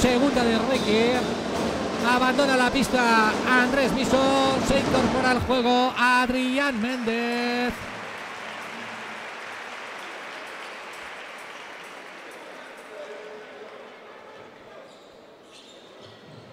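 A crowd murmurs and cheers in a large echoing arena, slowly quietening.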